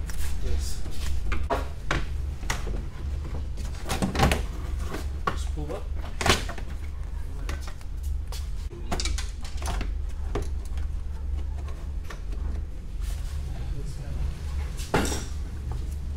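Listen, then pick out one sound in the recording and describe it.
Plastic trim clicks and knocks.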